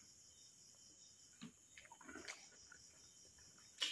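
A man gulps down a drink.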